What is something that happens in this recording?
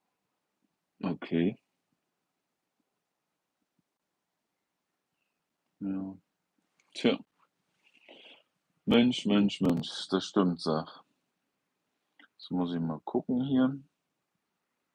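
An older man speaks calmly and close by, with long pauses.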